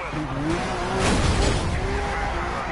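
A car crashes with a loud scraping impact.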